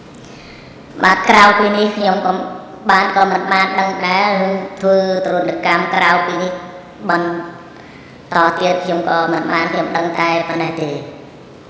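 A man speaks steadily over a microphone.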